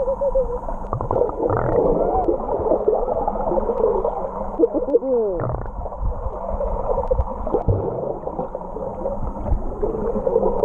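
Bubbles gurgle as a swimmer kicks underwater.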